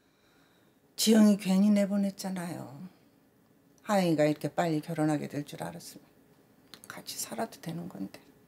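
A middle-aged woman speaks softly nearby.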